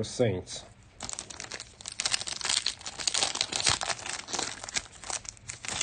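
A foil card pack crinkles and tears as hands rip it open.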